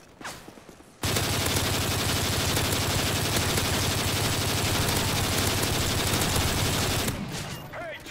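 A rifle fires in a long, rapid automatic burst.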